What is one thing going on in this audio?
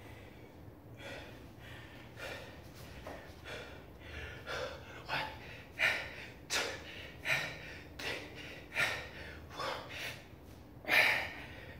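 A man exhales sharply with each push-up.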